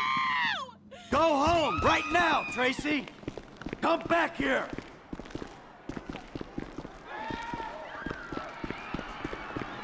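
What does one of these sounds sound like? Footsteps run quickly up hard stairs.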